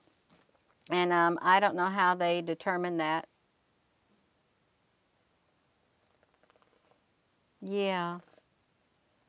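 A middle-aged woman speaks calmly and close up into a headset microphone.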